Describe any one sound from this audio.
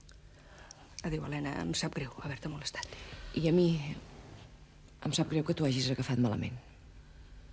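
A middle-aged woman speaks with feeling, close by.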